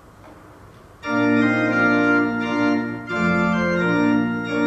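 A woman sings through a microphone in a large echoing hall.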